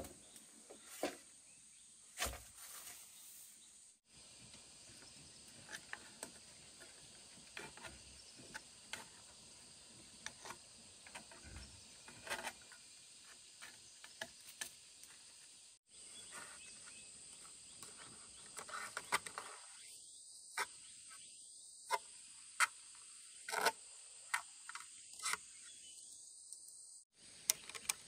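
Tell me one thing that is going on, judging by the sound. Bamboo poles knock and clatter against each other.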